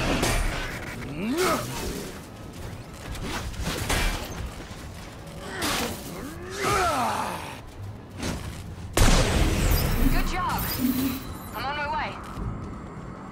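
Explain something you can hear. Monsters roar and screech in a violent fight.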